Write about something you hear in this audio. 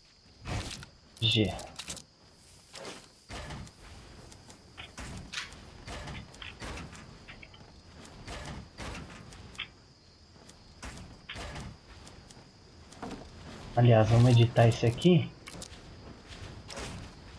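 Game building pieces snap into place with quick, repeated knocks.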